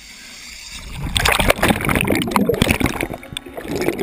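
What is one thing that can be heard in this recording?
Bubbles rush and gurgle loudly underwater.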